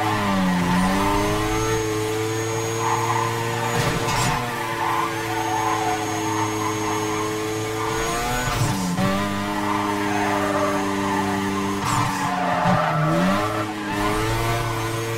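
A car engine roars at high revs, dropping briefly as gears shift.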